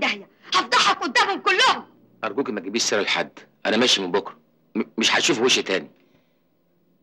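A young woman speaks sharply and forcefully.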